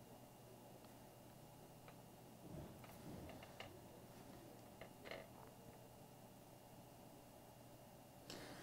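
A small metal tool clicks and scrapes lightly against a hard plastic figure.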